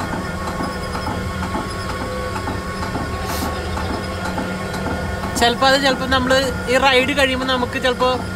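A tractor engine hums steadily up close.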